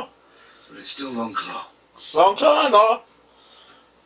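A man speaks in a low voice, heard through a television speaker.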